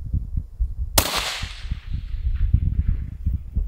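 A suppressed rifle fires a single loud shot that echoes away outdoors.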